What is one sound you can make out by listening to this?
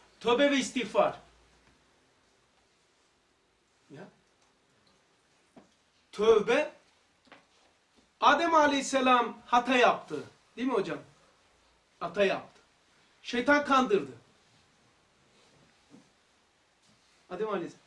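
An older man speaks calmly and with animation, close by, with pauses.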